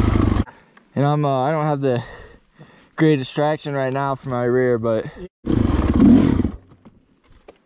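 A dirt bike engine snaps through quick, sharp revs in short bursts.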